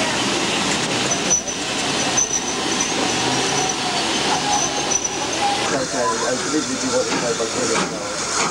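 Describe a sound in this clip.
A train rumbles past along the track.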